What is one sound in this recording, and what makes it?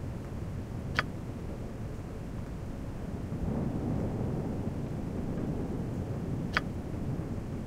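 A soft click sounds as a menu option is chosen.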